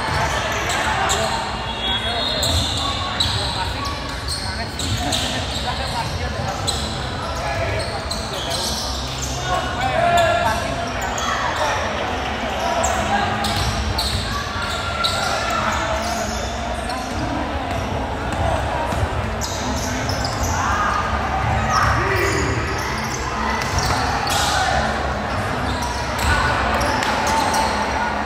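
Players and spectators call out and shout in a large echoing gym.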